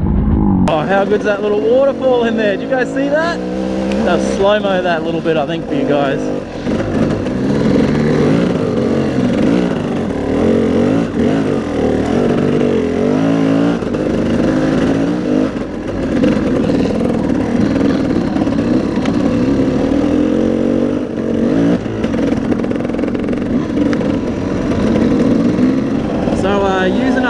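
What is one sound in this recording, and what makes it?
A dirt bike engine revs and roars close by.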